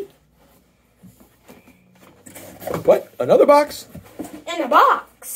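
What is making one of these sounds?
Cardboard boxes rustle and scrape on a table.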